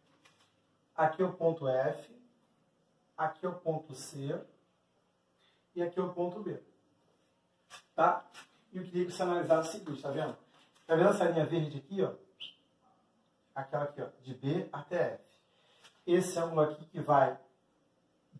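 A man speaks calmly and clearly, close by, explaining.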